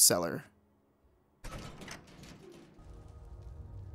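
A heavy wooden hatch thuds open.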